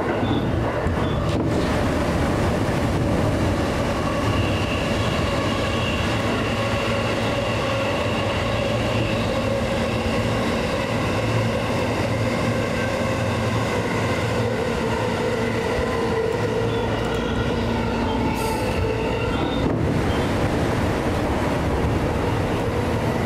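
A train rumbles steadily along rails, echoing through a tunnel.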